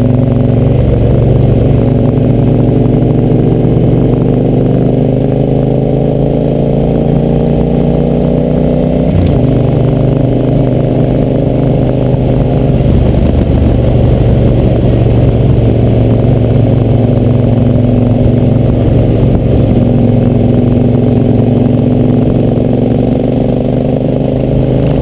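A motorcycle engine drones steadily up close, its pitch rising and falling as it speeds up and shifts gears.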